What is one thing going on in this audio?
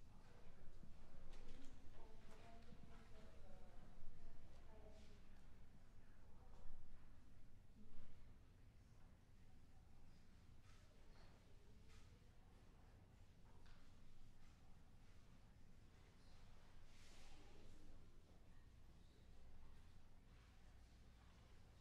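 A piano plays in an echoing hall.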